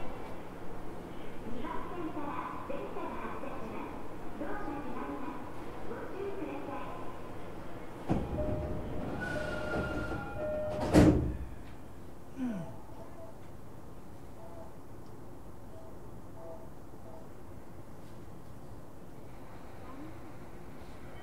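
A train hums steadily nearby.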